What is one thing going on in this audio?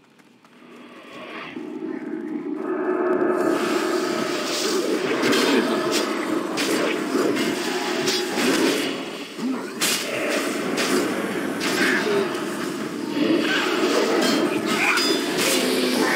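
Magic spells burst and weapons clash in a hectic game battle.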